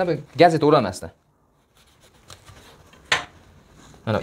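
A knife cuts through a wrap on a board.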